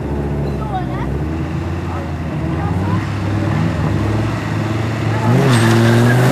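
A car engine idles loudly and revs.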